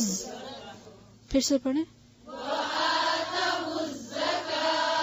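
A woman recites in a slow, melodic voice.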